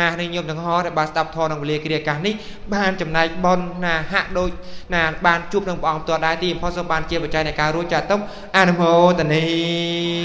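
A man chants into a microphone, heard loud and close through a loudspeaker.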